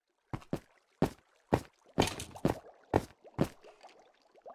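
Footsteps clack on hard stone.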